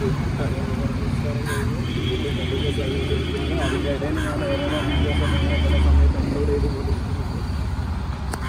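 A man talks on a phone outdoors, close by.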